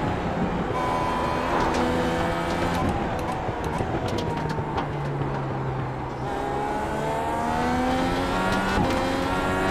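A racing car engine roars, its pitch dropping as it shifts down through the gears and climbing again as it speeds up.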